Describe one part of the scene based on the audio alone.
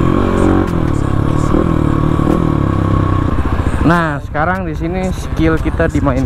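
A motorcycle engine drones steadily close by.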